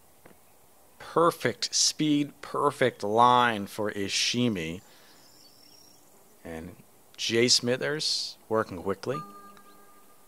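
A man talks casually into a headset microphone.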